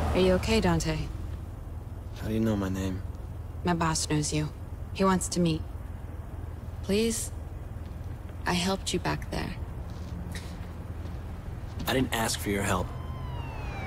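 A young woman answers calmly nearby.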